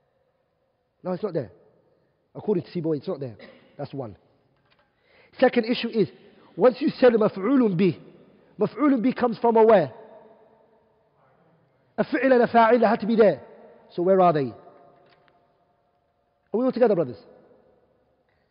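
A young man lectures with animation into a clip-on microphone, in a slightly echoing room.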